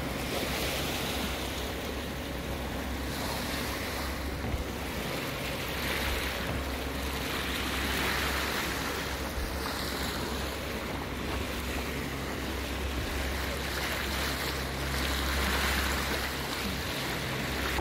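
Wind blows steadily outdoors over open water.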